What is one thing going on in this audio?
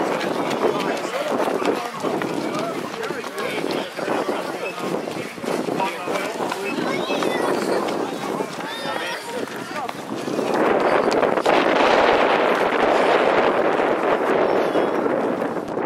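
Footsteps patter on a paved path.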